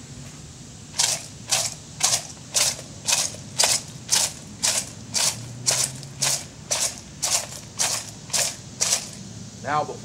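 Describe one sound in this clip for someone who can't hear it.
A rattle shakes in a steady, even rhythm.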